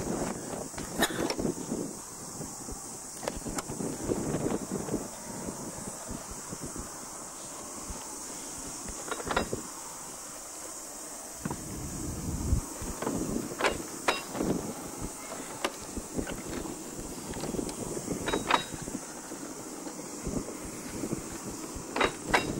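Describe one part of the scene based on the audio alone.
Steel wheels click sharply over rail joints.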